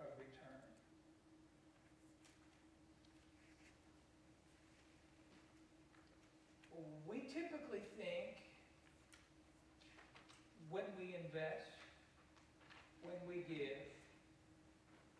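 An elderly man speaks in short bursts with pauses, heard through a microphone in a large echoing hall.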